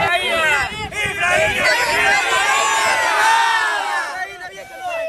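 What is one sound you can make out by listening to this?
A crowd of men and women cheers and shouts outdoors.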